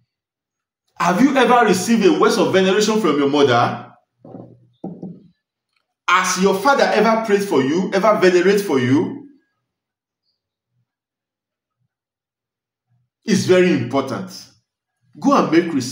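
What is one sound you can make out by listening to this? A man speaks with animation close to a microphone, pausing between phrases.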